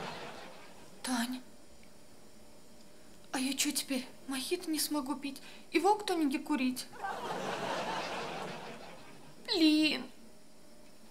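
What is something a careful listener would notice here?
A young woman speaks in an anxious, halting voice nearby.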